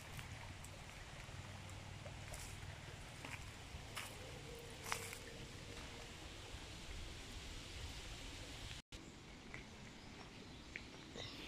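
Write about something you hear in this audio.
Shallow water trickles gently over stones.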